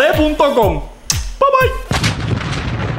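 A man speaks with animation, close up.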